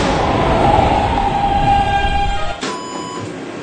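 A subway train rumbles into a station.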